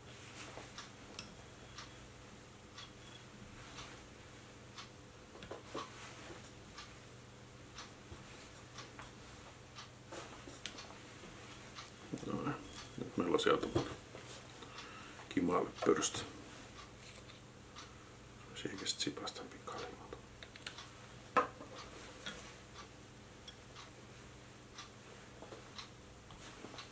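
Small tools click and tap lightly.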